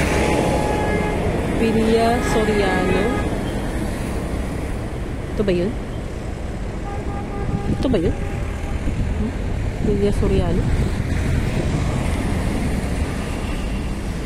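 Vehicle engines rumble steadily in passing street traffic.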